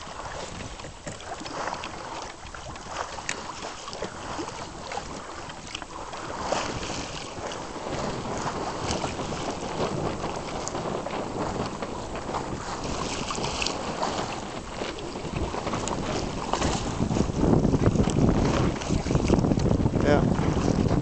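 Choppy water splashes and laps steadily.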